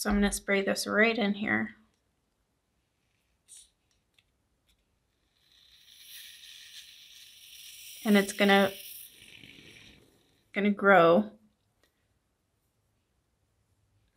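A plastic stick stirs a thick mixture in a small cup.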